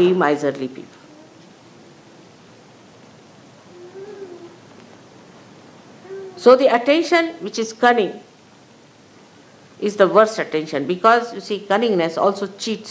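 An elderly woman speaks calmly, in bursts with pauses, close to a microphone.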